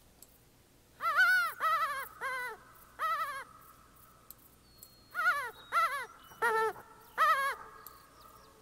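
A hand-held game call sounds a series of short, bending squeals in two bursts.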